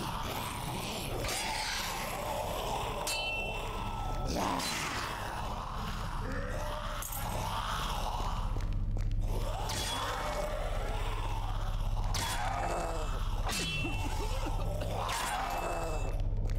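A monster growls and snarls.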